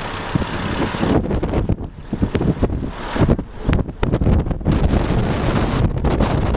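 A car drives along a road, its engine and tyres rumbling steadily.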